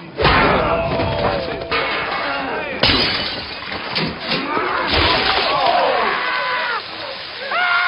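A crowd of men shouts and jeers.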